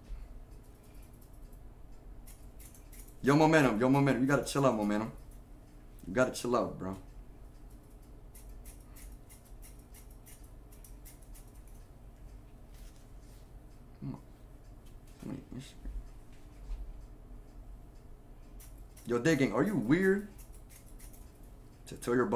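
Scissors snip repeatedly through hair.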